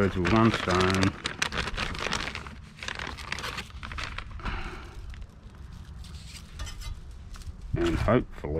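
A cable rustles as it is pulled.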